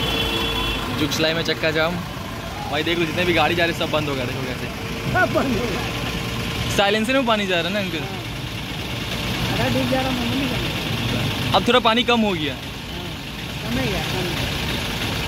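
A man talks nearby.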